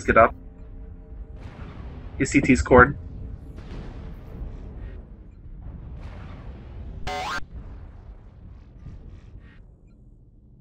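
Heavy cannon fire booms and rumbles in bursts.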